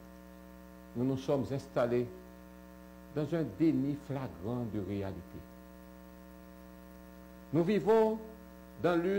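A man speaks calmly and formally into a microphone, close up.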